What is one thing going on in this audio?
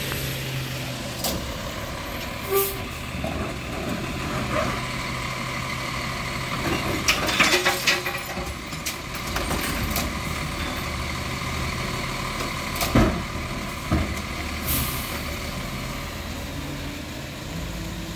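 A garbage truck engine idles and rumbles nearby.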